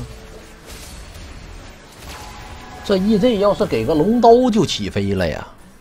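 Game spell effects whoosh and crackle softly.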